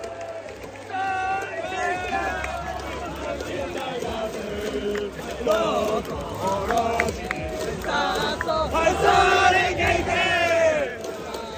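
A large crowd cheers and chants in a big echoing stadium.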